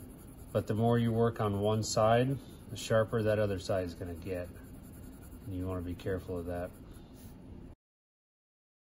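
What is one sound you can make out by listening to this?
A pencil scratches softly on paper.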